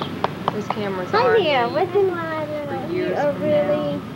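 A toddler babbles and squeals.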